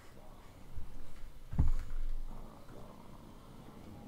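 Creatures growl and snarl close by.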